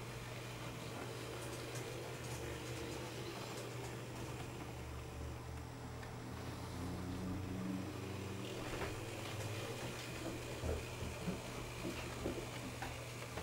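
A small model train motor hums steadily.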